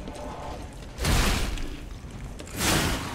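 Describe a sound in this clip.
A sword clashes in a fight.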